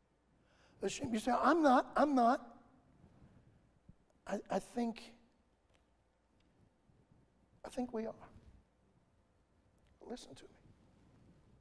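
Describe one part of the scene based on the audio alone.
A man preaches into a microphone, speaking in short, emphatic phrases with pauses between them.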